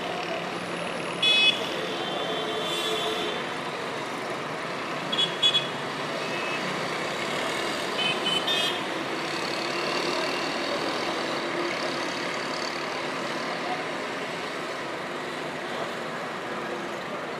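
Traffic hums steadily in the distance across a town.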